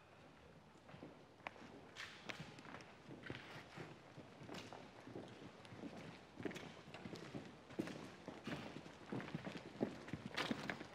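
Footsteps of several people shuffle across a hard floor in a large, quiet room.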